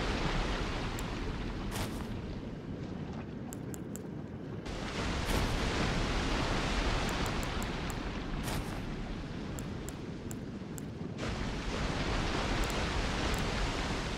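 Soft menu clicks tick as a selection moves.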